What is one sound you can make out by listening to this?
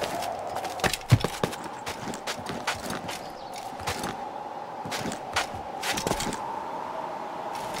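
Hands and boots scrape and knock while climbing a stone wall.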